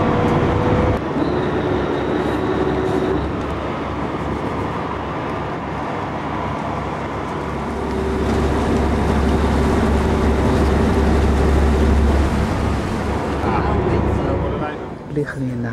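Water splashes against a moving hull.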